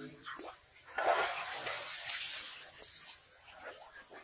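Muddy water splashes and sloshes.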